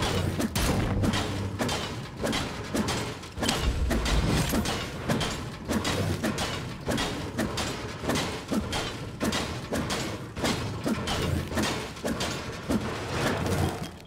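A pickaxe strikes objects with repeated hard knocks.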